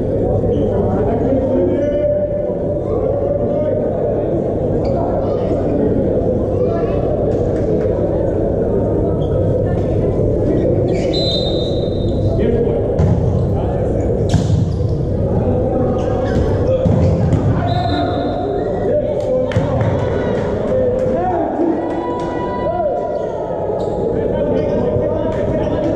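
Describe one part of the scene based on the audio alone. Spectators murmur and chatter in a large echoing indoor hall.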